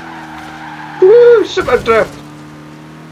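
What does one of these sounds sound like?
Tyres screech briefly in a drift.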